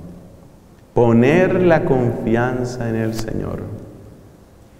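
A man speaks calmly through a microphone in a room with a slight echo.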